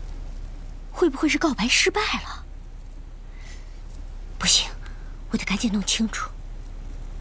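A middle-aged woman speaks calmly and quietly nearby.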